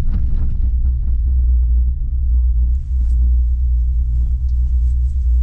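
Tyres crunch and hiss through fresh snow.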